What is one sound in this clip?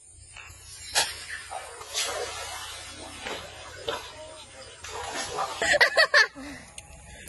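A fish thrashes and splashes loudly in shallow water.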